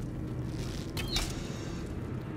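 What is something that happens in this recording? An arrow is loosed from a bow and strikes with a sharp snap.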